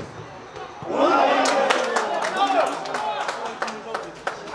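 Onlookers cheer loudly after a shot on goal.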